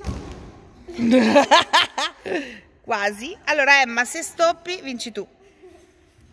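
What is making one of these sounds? Young girls shout and cheer excitedly nearby.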